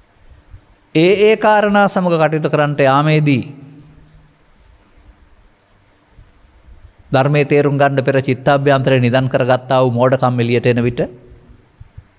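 An elderly man speaks calmly into a microphone, in two short bursts with pauses between them.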